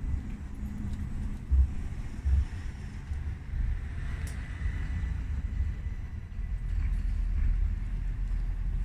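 A tram rolls away along the tracks with a low hum.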